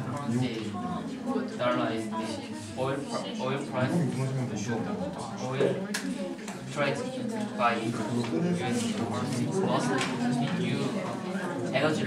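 A young man speaks steadily into a microphone, heard through a loudspeaker in an echoing room.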